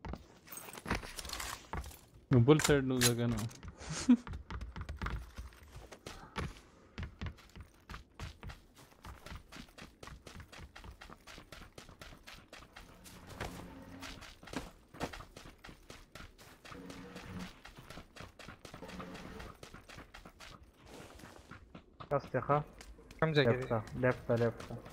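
Quick footsteps run on hard ground and snow.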